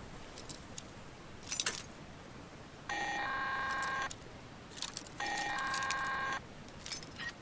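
A metal lockpick clicks and scrapes inside a lock.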